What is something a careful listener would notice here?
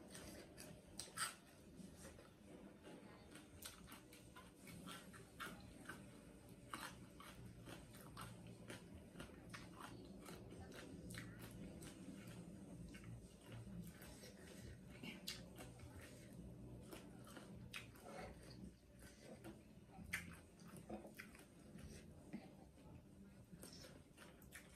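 A young woman chews food close to a microphone with wet, crisp mouth sounds.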